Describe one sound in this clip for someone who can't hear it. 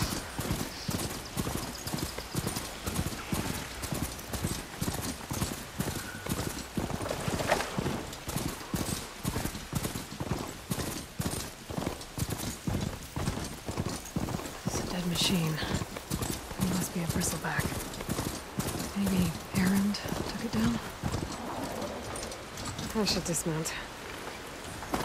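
Heavy metal hooves gallop in a fast, steady rhythm over dirt and stone.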